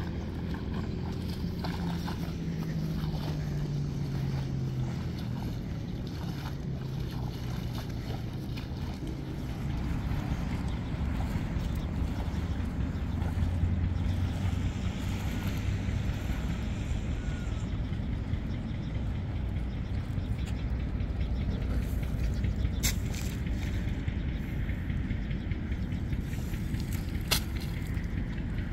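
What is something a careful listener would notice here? Water splashes and sloshes as a person wades through shallow water.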